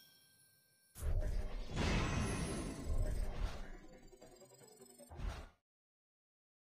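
Rising chimes and jingles of rewards play.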